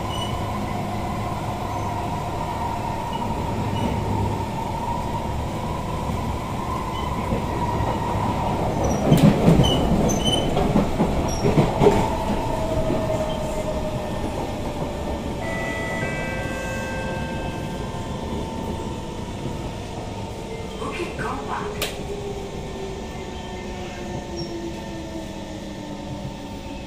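An electric metro train's motor whines as it runs at speed.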